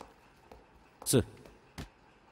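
A heavy stack of files thumps down onto a desk.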